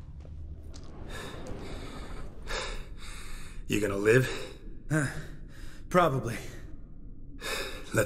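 A man speaks in a low, calm, gravelly voice.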